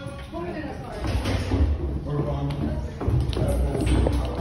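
Footsteps thud down concrete stairs.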